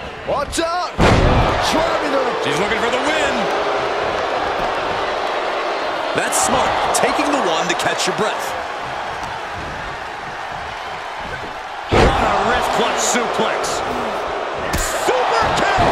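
Bodies slam hard onto a wrestling mat with heavy thuds.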